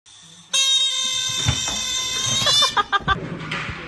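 Air squeals loudly out of a balloon's stretched neck.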